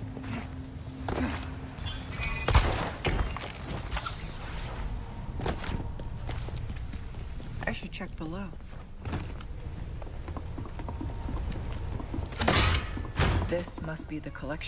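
Footsteps tap and scuff on stone.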